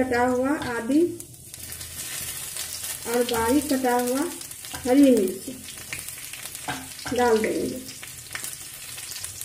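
Chopped vegetables sizzle and crackle in hot oil in a metal wok.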